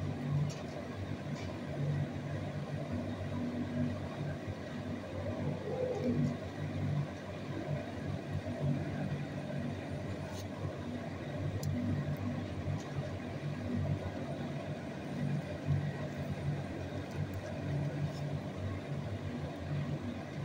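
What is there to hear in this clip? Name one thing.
A dog licks food from a hand.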